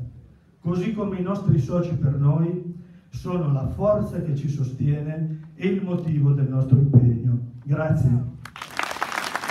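An elderly man speaks with force into a microphone in a large hall.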